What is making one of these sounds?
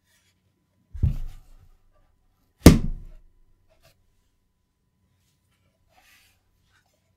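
Hands rub and scrape against a metal case.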